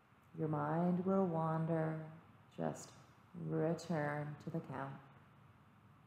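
A woman speaks softly and slowly nearby.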